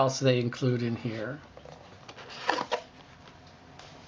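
A cardboard box lid slides off with a soft scrape.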